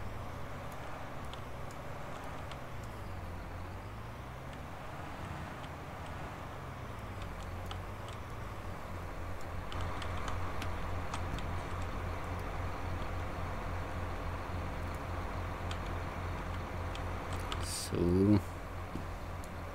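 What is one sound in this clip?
A tractor engine hums steadily.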